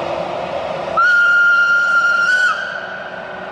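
A train horn sounds once, long and loud.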